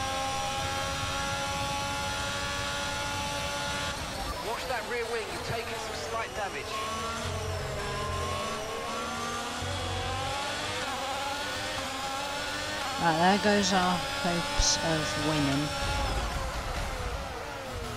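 A racing car engine whines loudly at high revs, its pitch dropping and climbing as the gears change.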